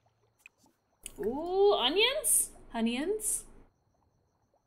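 A young woman speaks with animation, close to a headset microphone.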